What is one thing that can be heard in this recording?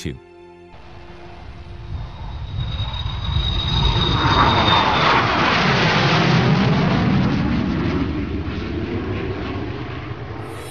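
A jet airliner's engines roar loudly as it flies low overhead, rising and then slowly fading.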